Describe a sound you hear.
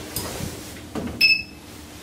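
A finger clicks an elevator button.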